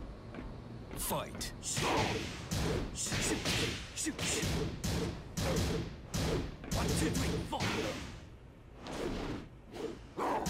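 Heavy punches and kicks land in quick bursts with loud smacks and crashes.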